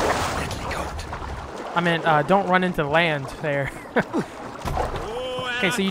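Water swishes and laps as a swimmer strokes through it.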